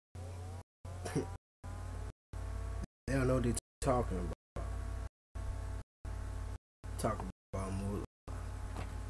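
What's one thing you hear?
A young man speaks close by in short bursts.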